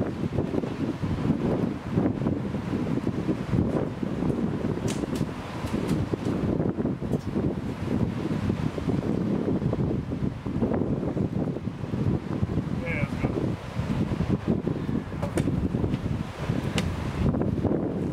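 Footsteps climb metal stairs.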